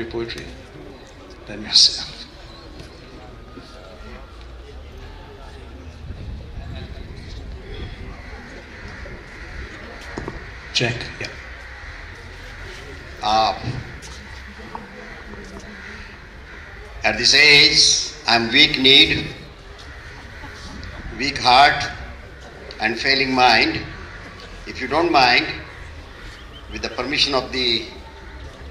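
A man speaks into a microphone with animation, heard over loudspeakers outdoors.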